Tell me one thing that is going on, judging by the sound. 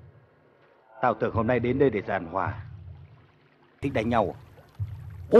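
A middle-aged man speaks calmly and menacingly up close.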